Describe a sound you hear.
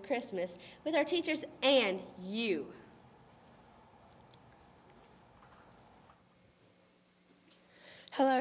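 A teenage girl speaks into a microphone.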